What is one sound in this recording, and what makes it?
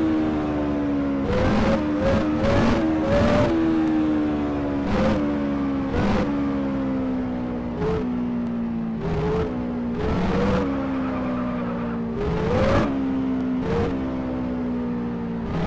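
A sports car engine drones as the car cruises along.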